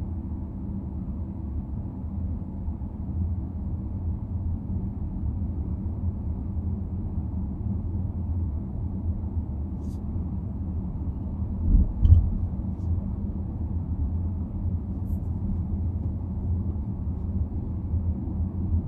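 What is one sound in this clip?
Tyres roll over the road with a low, steady rumble.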